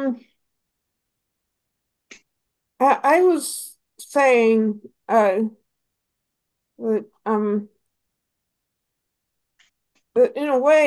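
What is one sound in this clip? A young woman talks calmly in short bursts over an online call.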